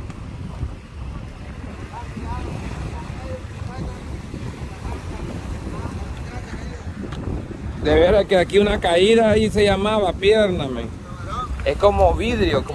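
Waves wash against a rocky shore nearby.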